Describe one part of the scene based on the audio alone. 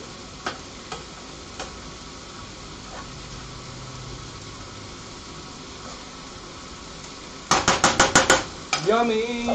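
A spoon scrapes and stirs food in a frying pan.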